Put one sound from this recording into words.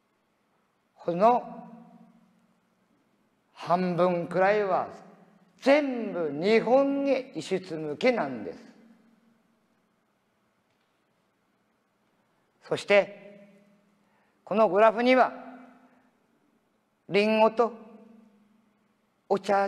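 An elderly man sings in phrases, his voice ringing out in a large echoing hall.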